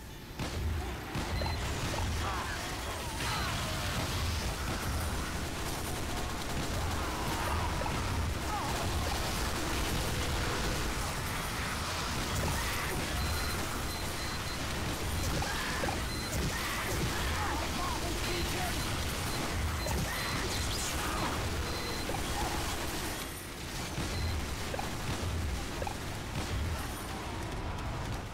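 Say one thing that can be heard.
A minigun fires in long, rapid rattling bursts.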